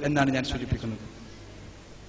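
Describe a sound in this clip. A man speaks with animation through a microphone in a large hall.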